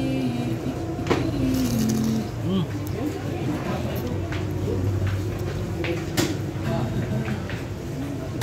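A man slurps noodles loudly up close.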